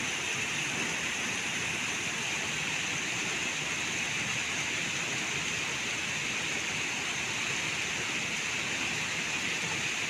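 Water pours steadily over a small weir and splashes into a pool.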